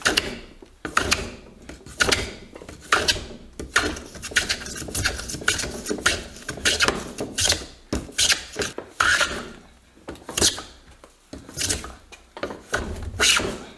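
A hand plane shaves wood in quick, rasping strokes.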